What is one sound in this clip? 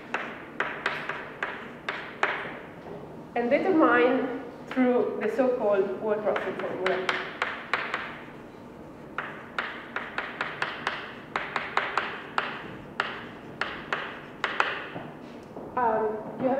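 Chalk taps and clicks rapidly on a blackboard.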